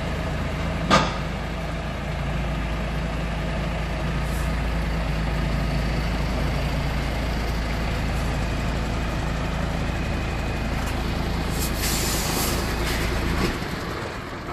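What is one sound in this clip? A truck engine idles with a steady low rumble nearby.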